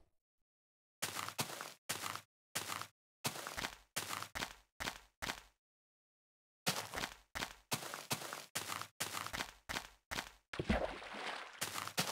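Footsteps crunch softly over grass.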